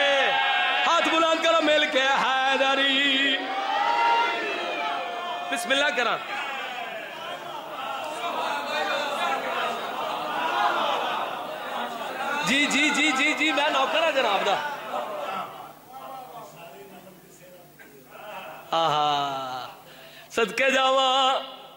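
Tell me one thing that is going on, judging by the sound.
A crowd of men chants loudly together in an echoing hall.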